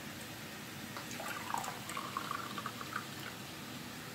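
Tea pours into a cup.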